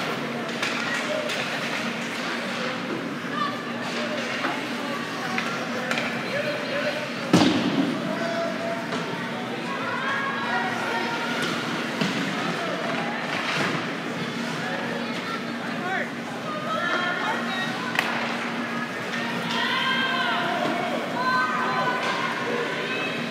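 A crowd of spectators chatters and calls out in an echoing arena.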